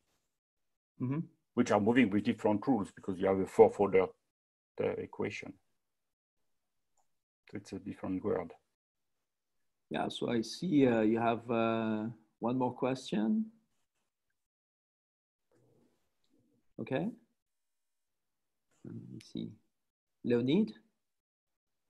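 An older man speaks calmly, in bursts with pauses, heard through an online call.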